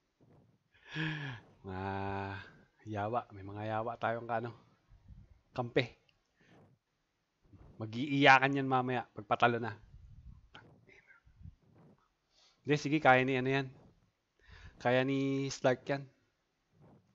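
A man talks casually into a close microphone, in short bursts.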